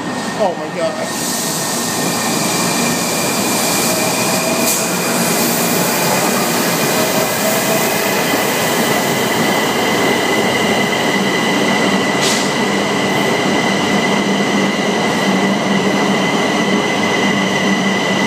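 A subway train roars and rattles loudly close by as it passes.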